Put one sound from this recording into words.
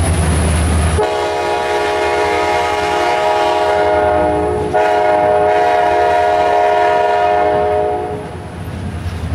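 Steel wheels squeal on the rails.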